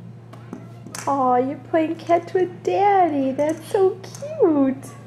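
A baby squeals and laughs loudly up close.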